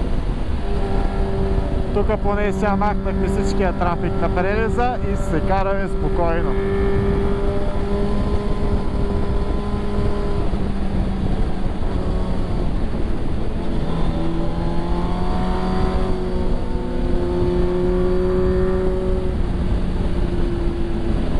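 Wind rushes loudly past a rider.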